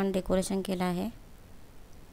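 A woman speaks loudly close by.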